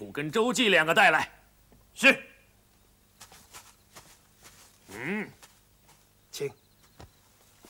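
A man shouts loudly outdoors.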